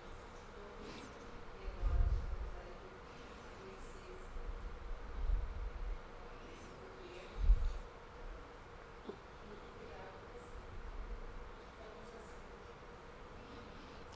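A middle-aged woman speaks softly into a microphone.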